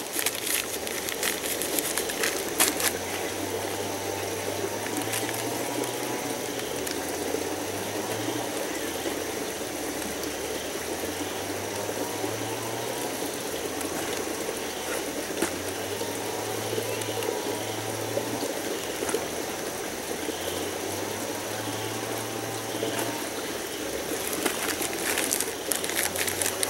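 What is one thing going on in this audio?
A paper bag crinkles and rustles.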